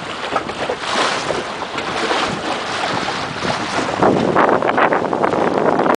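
Water splashes and slaps against a small boat's hull.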